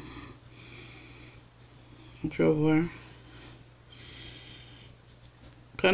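A colored pencil scratches softly on paper.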